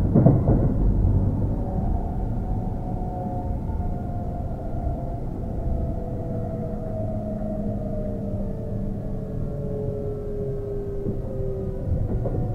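An electric train rumbles along the rails, slowing down.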